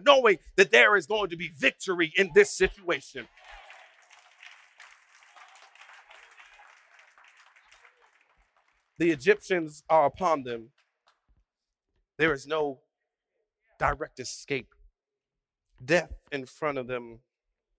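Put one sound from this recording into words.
A man speaks with animation through a microphone in a large hall, pausing between phrases.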